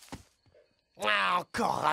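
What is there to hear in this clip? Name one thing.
A man speaks in a deep voice.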